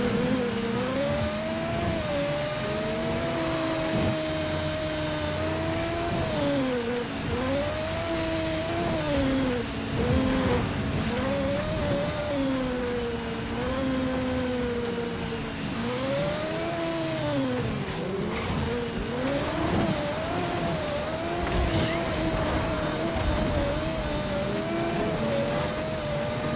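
A racing car engine whines steadily, rising and falling in pitch as it speeds up and slows down.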